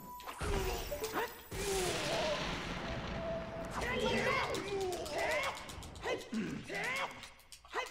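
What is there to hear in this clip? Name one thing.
A sword swishes and clangs in short strikes.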